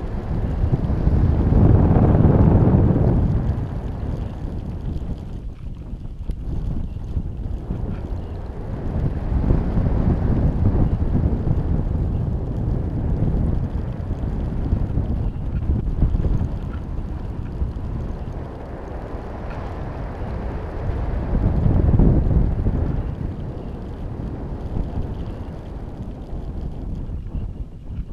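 Wind rushes and buffets loudly past, rising and falling in gusts.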